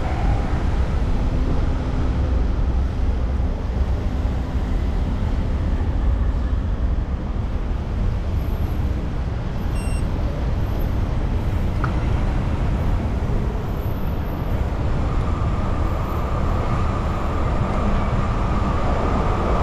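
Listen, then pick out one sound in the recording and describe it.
Wind rushes steadily past while riding outdoors.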